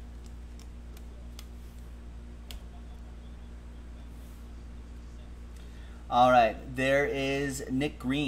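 Trading cards flick and rustle in a man's hands.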